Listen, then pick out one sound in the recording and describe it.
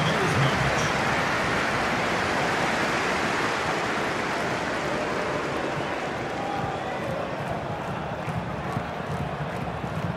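A large stadium crowd roars and cheers steadily, slowly quietening.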